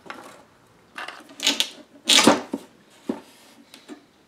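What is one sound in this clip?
A wooden mirror frame knocks and clatters against a table.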